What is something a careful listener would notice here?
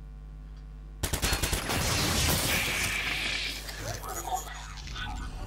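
A smoke grenade bursts with a loud, rushing hiss.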